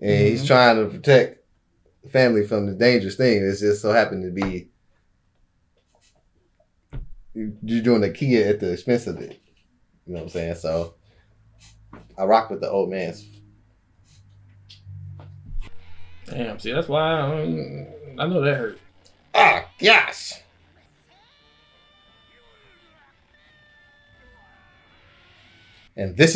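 A second young man speaks calmly close by.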